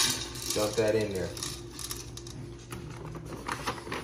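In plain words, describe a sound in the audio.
Dry kibble rattles and pours into a metal bowl.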